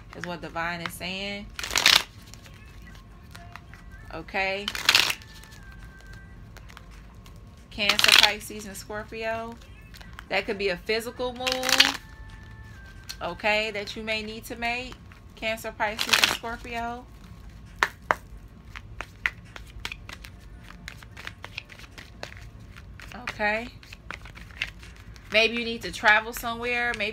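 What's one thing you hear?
Playing cards are shuffled and riffled by hand.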